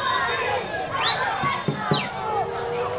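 A referee's whistle blows one long, sharp blast.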